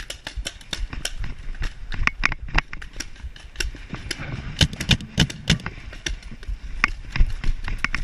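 Footsteps crunch quickly over dry grass and dirt.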